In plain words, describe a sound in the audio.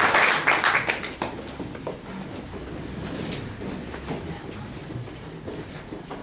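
A woman speaks calmly in a hall.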